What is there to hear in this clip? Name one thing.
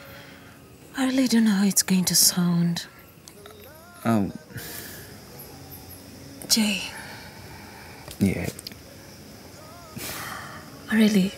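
A young woman speaks softly and emotionally, close by.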